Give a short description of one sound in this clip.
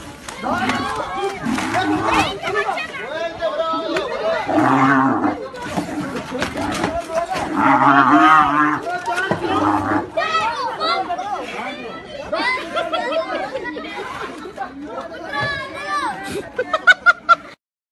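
Several men shout excitedly nearby, outdoors.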